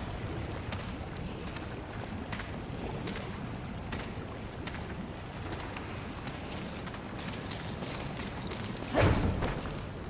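Footsteps crunch over stony ground.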